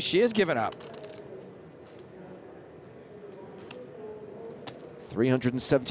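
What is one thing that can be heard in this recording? Poker chips click together as a man shuffles them.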